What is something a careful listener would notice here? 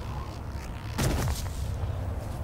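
A heavy blow lands with a loud crunch.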